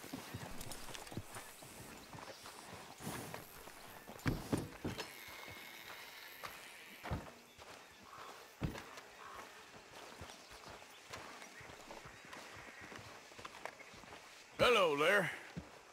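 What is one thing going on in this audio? Footsteps crunch on dirt.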